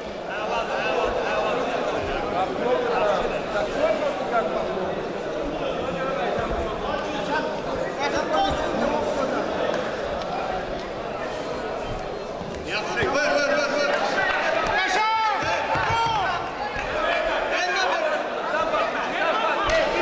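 Two fighters' bodies thud and scuffle on a padded mat.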